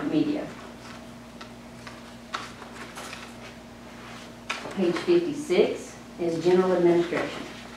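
An older woman speaks calmly into a microphone.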